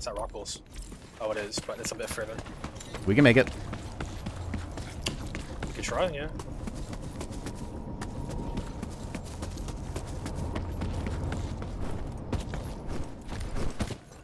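Footsteps tread steadily over ground outdoors.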